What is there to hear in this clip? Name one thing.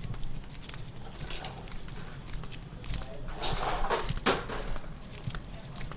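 Sandals slap and scuff on a concrete path.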